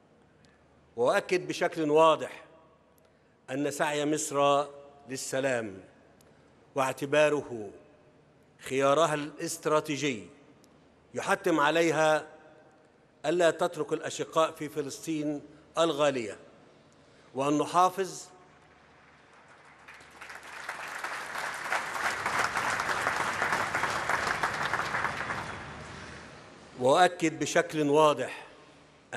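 A man speaks slowly and firmly into a microphone.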